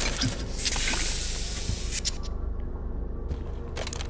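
A short chime sounds as a small item is picked up.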